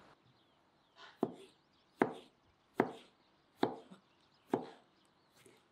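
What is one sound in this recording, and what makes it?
A knife chops through a pickle onto a cutting board with sharp, even knocks.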